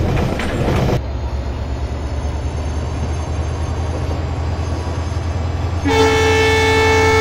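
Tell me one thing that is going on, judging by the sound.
Diesel locomotive engines rumble steadily.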